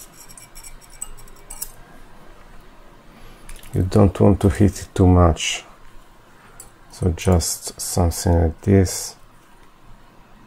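A screwdriver taps and scrapes against small metal parts.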